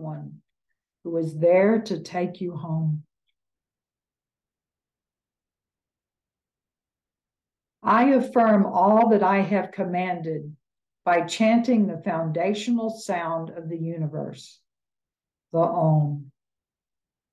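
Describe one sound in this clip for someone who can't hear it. An elderly woman speaks calmly in short bursts over an online call.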